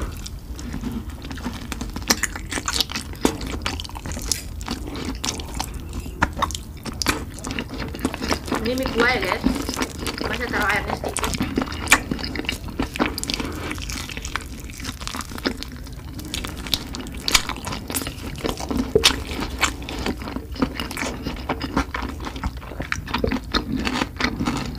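A metal fork and spoon clink and scrape against a plate.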